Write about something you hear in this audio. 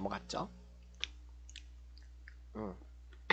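A young man crunches a snack as he chews.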